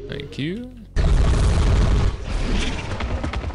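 Energy weapons fire in rapid bursts with crackling impacts.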